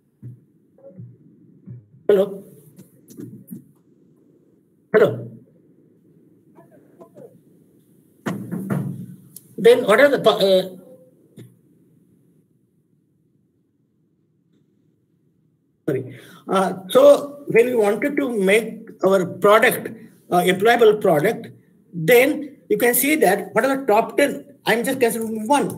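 An elderly man speaks steadily, heard through an online call, with pauses.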